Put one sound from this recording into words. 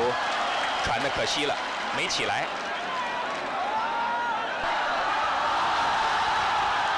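A large crowd roars and cheers in a big open stadium.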